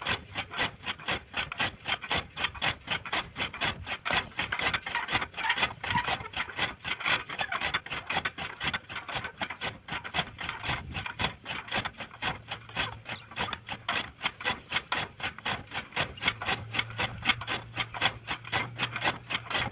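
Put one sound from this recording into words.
A hand-cranked machine clatters rhythmically as its wheel turns.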